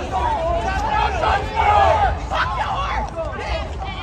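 A young woman shouts angrily.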